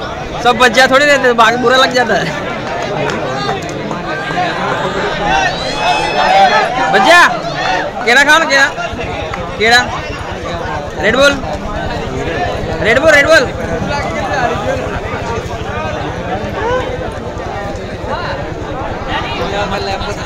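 A large outdoor crowd chatters and cheers.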